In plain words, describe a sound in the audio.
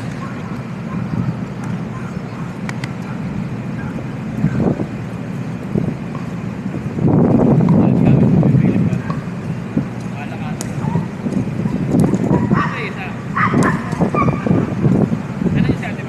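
Steady outdoor city noise hums in the background.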